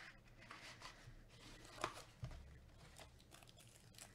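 A cardboard box slides open.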